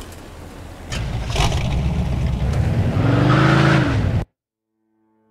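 A car engine starts and revs.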